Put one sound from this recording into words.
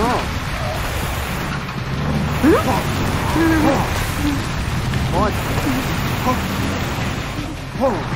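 Water sprays hard from a hose.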